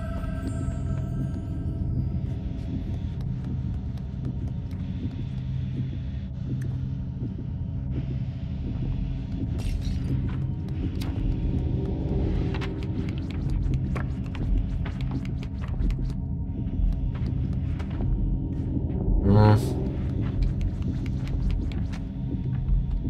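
A low, steady rumbling drone plays throughout.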